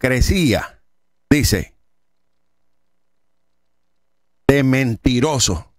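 A middle-aged man reads aloud calmly and clearly into a close microphone, with pauses.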